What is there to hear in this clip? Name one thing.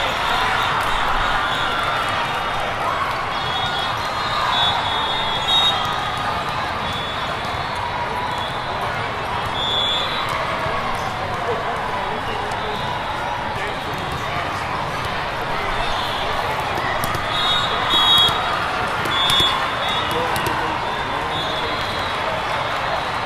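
A large crowd chatters steadily, echoing through a vast hall.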